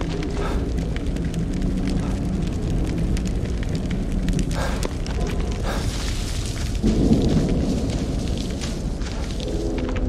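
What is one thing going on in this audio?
Footsteps run over hard ground.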